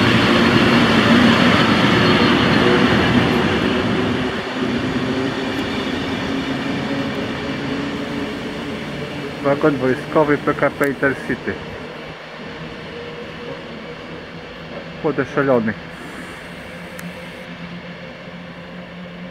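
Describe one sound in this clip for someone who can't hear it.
A train rolls past along the tracks with a loud rumble that slowly fades as it pulls away.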